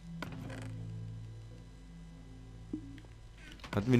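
A wooden chest creaks shut.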